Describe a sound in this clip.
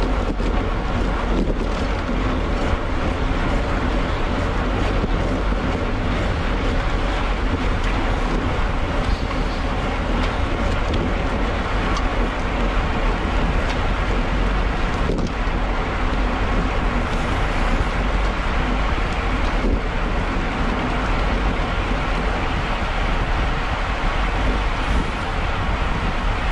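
Bicycle tyres rumble over a rough wet road.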